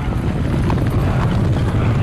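Horses gallop across the ground in a charge.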